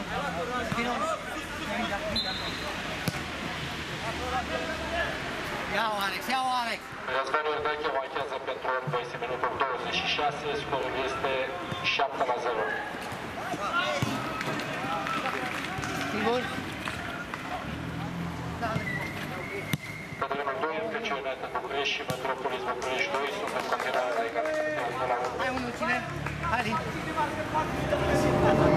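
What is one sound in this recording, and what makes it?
Men shout and call out across an outdoor pitch.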